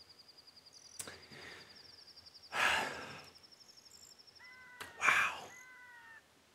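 A young man speaks briefly and casually into a close microphone.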